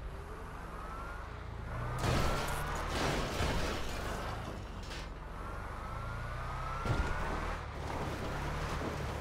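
Tyres skid and screech on the road.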